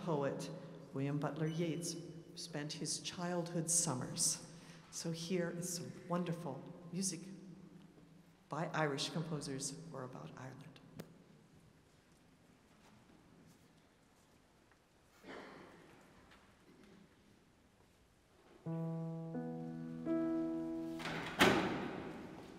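A large choir sings in a large echoing hall.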